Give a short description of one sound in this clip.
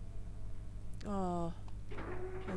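A demon lets out a harsh, falling growl.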